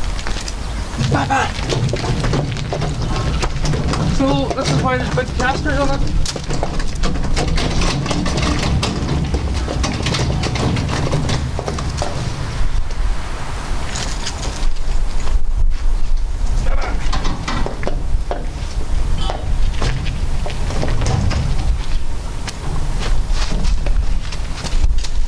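Trolley wheels roll and crunch over gravel.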